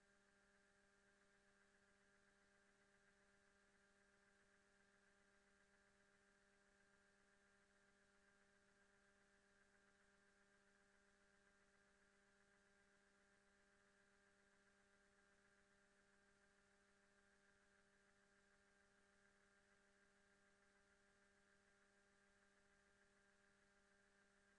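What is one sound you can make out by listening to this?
A spaceship engine hums steadily.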